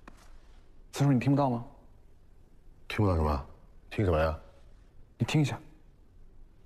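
A middle-aged man speaks in short, urgent phrases close by.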